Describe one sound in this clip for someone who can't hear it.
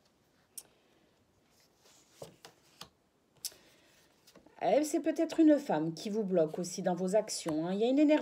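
Playing cards rustle and tap as a hand handles them.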